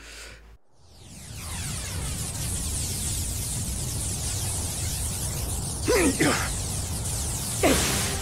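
A powerful energy blast roars with a loud rushing hiss.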